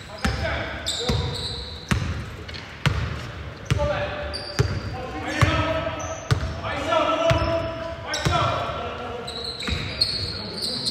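A basketball bounces steadily on a hardwood floor in a large echoing gym.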